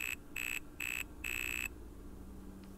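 Electronic video game tones beep in short repeated bursts.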